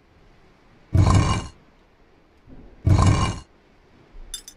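A heavy stone bust grinds as it turns on its base.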